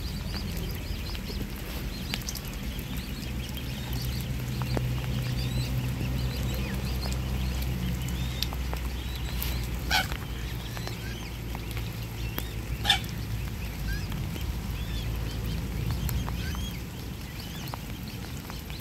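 Cygnets peep softly and continuously.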